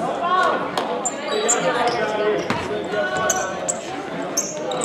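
Sneakers squeak sharply on a wooden floor in a large echoing hall.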